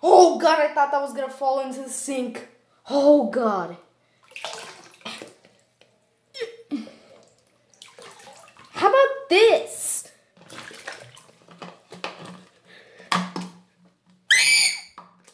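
Water splashes as a toy is swished around in a sink.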